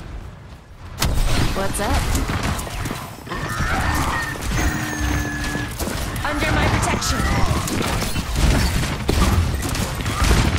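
Rapid gunfire and explosions crackle loudly.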